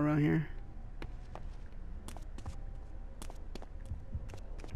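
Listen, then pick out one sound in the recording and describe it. Footsteps tap on a hard floor at a walking pace.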